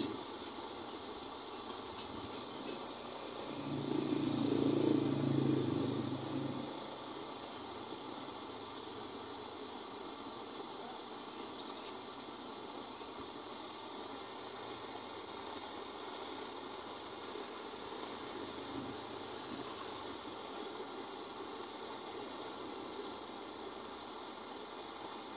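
A gas torch roars steadily.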